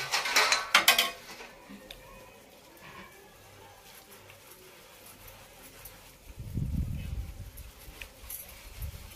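Metal dishes clatter and clink as they are scrubbed.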